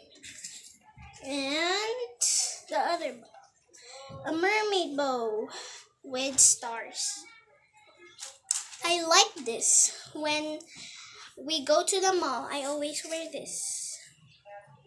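A young girl sings close by.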